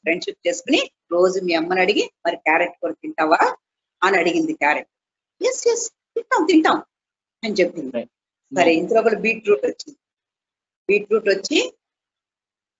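An elderly woman speaks with animation over an online call.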